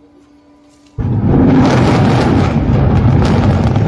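A rapid series of explosions booms out.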